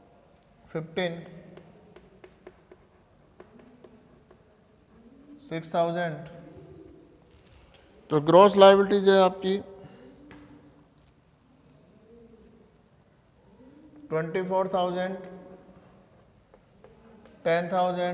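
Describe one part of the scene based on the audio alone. A man speaks loudly in short bursts, in a room with some echo.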